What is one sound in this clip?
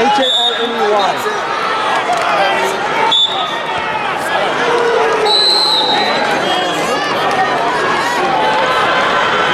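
A large crowd of spectators chatters and shouts in a large echoing arena.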